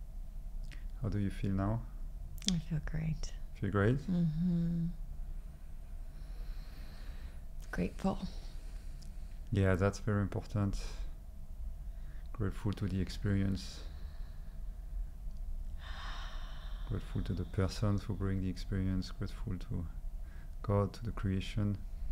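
A man speaks slowly and calmly into a close microphone, with long pauses.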